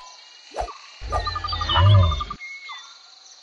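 A lion growls loudly.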